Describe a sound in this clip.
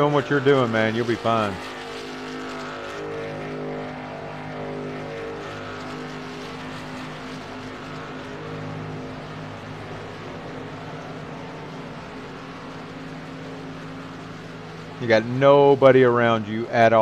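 A race car engine drones steadily at speed.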